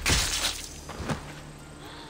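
A blade strikes a body with a sharp thud.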